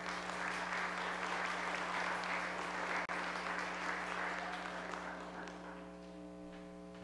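A saxophone plays in a large echoing hall.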